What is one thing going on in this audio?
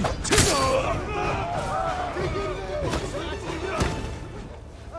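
Swords clash and strike with sharp metallic blows.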